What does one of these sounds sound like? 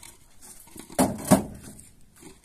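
Concrete blocks knock together as they are set down on the ground.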